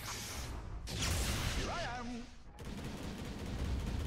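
Magic blasts crackle and whoosh.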